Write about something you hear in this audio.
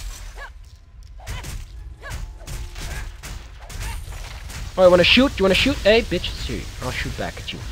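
Magic blasts and weapon hits crackle and thud in a fast fight.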